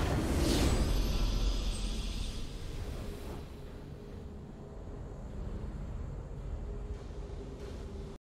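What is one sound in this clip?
A triumphant fanfare plays and slowly fades.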